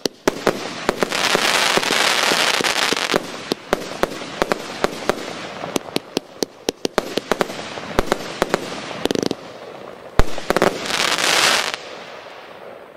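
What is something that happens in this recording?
Fireworks crackle and fizz loudly.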